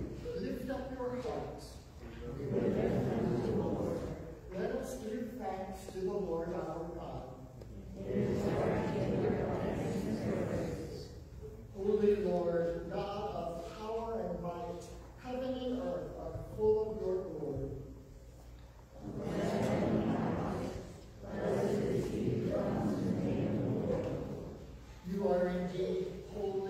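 A congregation of men and women recites together in unison in a large echoing hall.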